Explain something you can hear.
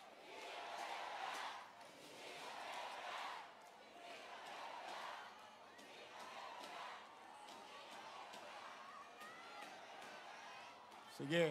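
A large crowd chants and cheers in rolling waves outdoors.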